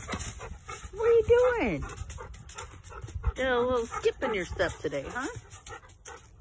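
A dog yowls and howls in bending, talking-like bursts close by.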